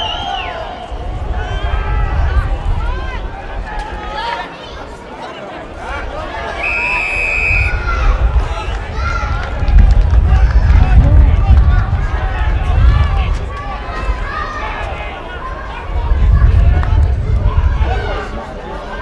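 A crowd cheers and roars outdoors.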